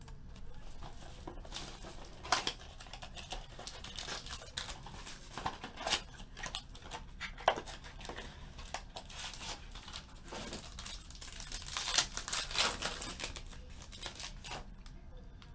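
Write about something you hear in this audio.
Plastic wrapping crinkles and rustles as it is torn open.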